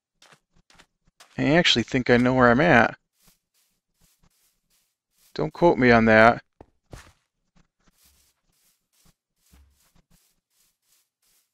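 Soft footsteps tread on grass.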